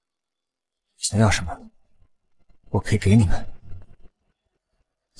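A young man speaks in a low, cold voice.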